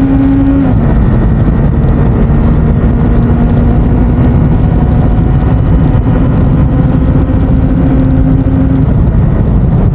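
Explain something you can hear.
A motorcycle engine hums steadily at speed, its pitch easing down.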